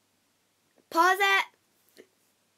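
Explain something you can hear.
A young girl shrieks loudly.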